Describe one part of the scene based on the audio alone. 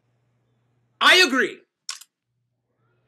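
A man exclaims loudly over an online call.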